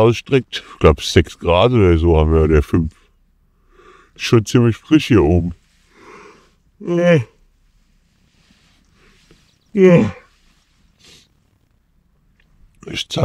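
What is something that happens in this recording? A man talks quietly and drowsily close by, with long pauses.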